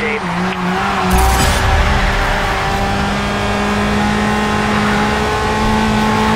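A sports car engine roars steadily at high speed.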